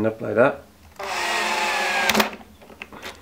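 An electric screwdriver whirs briefly.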